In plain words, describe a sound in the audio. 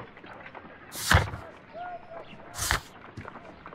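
A page flips over with a quick swish.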